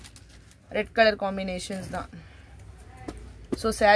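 Cloth rustles softly as it is handled.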